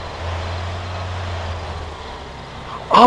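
A car engine hums steadily, then cuts out.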